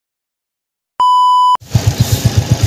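A steady electronic test tone beeps briefly.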